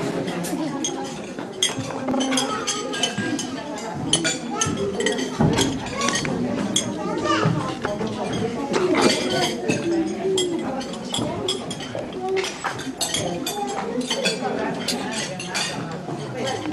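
Cutlery and plates clink.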